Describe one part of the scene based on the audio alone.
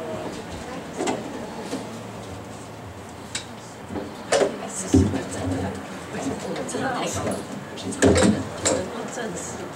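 Equipment knocks and clatters as it is moved.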